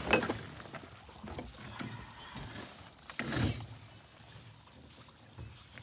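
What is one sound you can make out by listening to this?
Crabs scratch and clatter against each other in a bucket.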